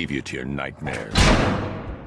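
A man speaks in a strained, menacing voice.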